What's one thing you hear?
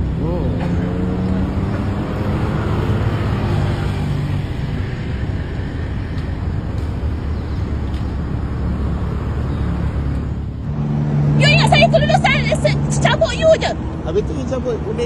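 A car engine hums steadily nearby.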